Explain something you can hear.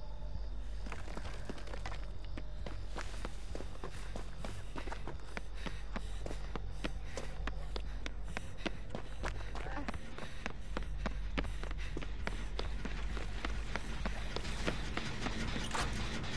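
Footsteps of a running person thud over the ground.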